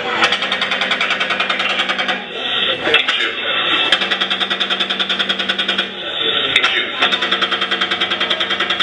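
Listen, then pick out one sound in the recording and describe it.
Loud music plays with a fast, steady beat.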